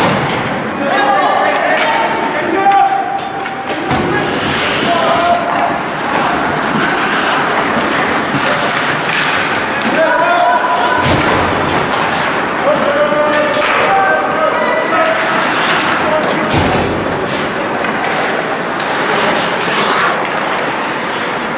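Spectators shout and call out in an echoing arena.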